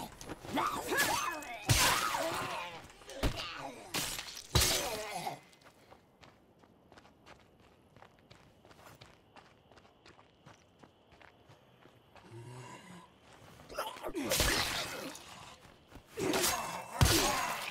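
Heavy blows land with loud thuds and crunches.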